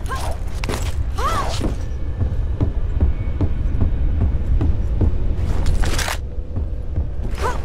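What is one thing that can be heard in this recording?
Footsteps patter quickly on stone and wood.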